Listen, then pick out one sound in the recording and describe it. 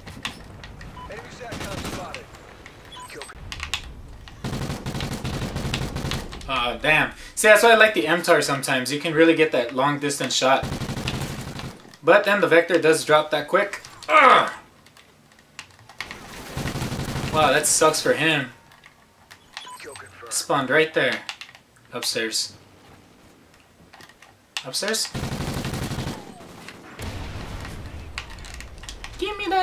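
Gunfire from a video game crackles in quick bursts.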